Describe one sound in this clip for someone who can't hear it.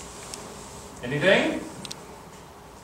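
An elderly man says a few words calmly nearby.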